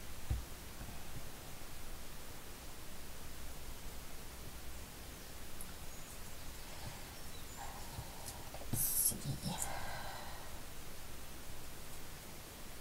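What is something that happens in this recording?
Lace fabric rustles softly as it is handled.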